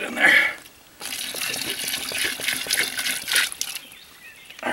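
Water pours and splashes into a plastic bucket.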